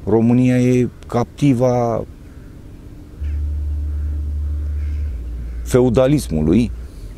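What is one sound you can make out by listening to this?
An older man speaks calmly and close to a clip-on microphone.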